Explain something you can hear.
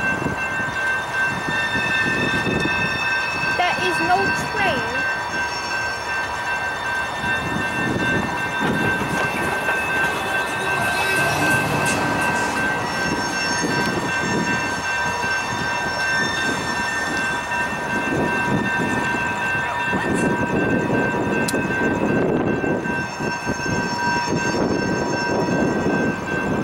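A freight train rumbles along the tracks.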